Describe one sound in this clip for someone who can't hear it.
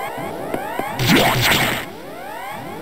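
A game door opens with a sharp hiss.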